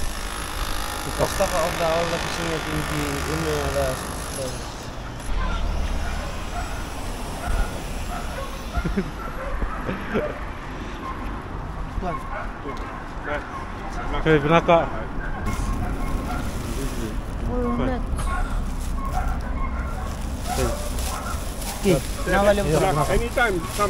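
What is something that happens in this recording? A young man talks calmly.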